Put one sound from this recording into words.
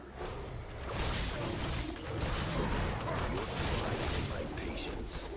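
Fiery spell blasts crackle and whoosh in a game battle.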